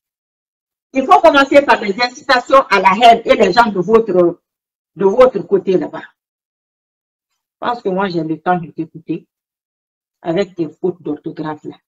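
A woman speaks with animation up close, in short bursts.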